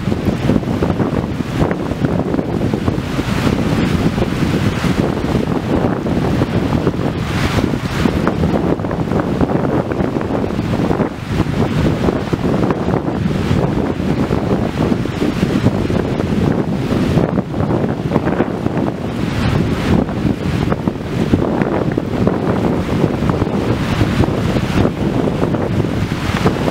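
Strong wind gusts across the microphone outdoors.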